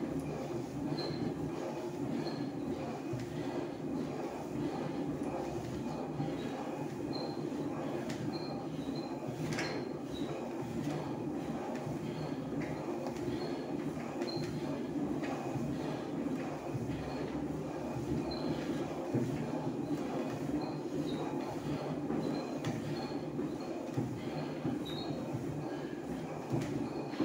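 An elliptical trainer squeaks with each stride.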